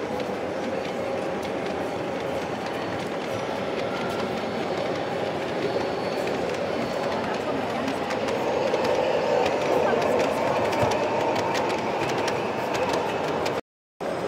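A model train rolls along metal rails.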